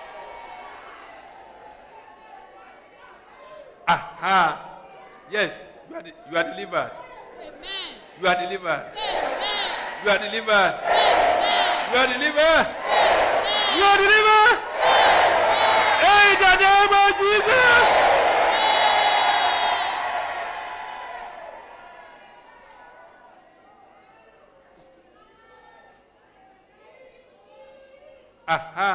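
A large crowd of men and women prays aloud, their voices overlapping in a big echoing hall.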